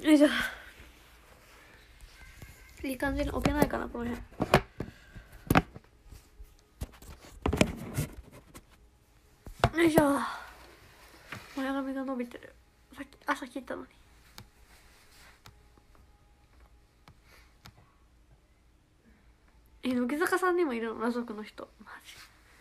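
A young woman talks softly and casually into a nearby phone microphone.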